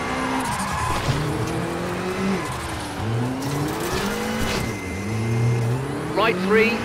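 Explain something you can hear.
A racing car engine revs up and down as gears shift.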